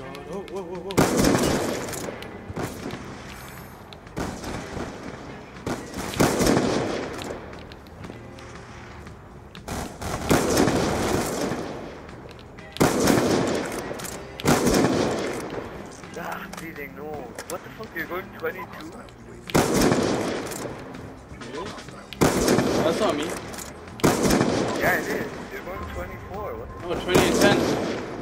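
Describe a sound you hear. Loud rifle shots crack and echo, one every few seconds.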